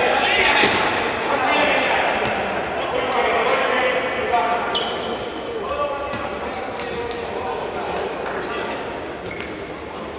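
A futsal ball is kicked on an indoor court.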